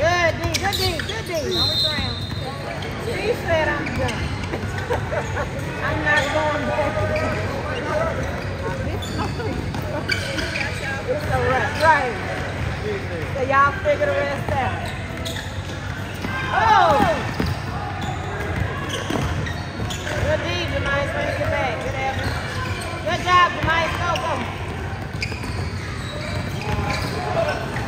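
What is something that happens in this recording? Basketball shoes squeak sharply on a hardwood court in a large echoing gym.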